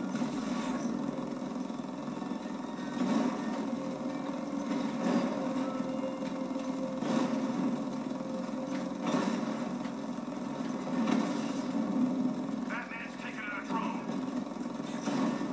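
A heavy vehicle engine roars steadily through a television speaker.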